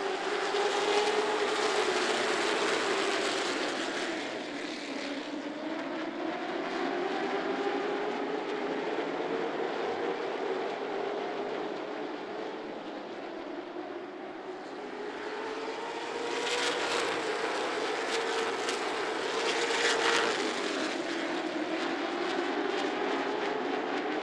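Race car engines roar loudly and steadily, their pitch rising and falling.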